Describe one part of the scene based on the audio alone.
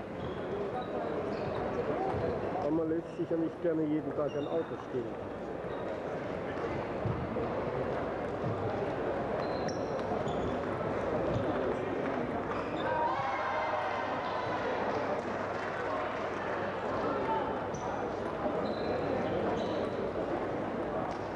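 Table tennis balls click against paddles and tables.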